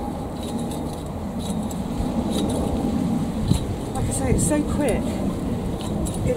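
Leaves rustle softly close by.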